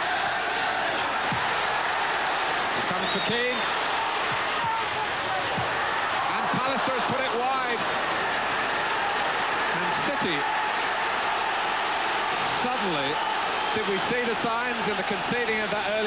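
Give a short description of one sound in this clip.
A large crowd roars and chants throughout in a big open stadium.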